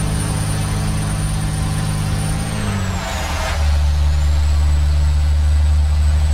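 A heavy truck engine rumbles steadily, dipping briefly and then growing deeper and louder.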